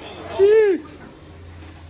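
A young man lets out an excited shout nearby.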